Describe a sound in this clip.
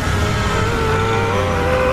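A heavy truck engine rumbles loudly close by.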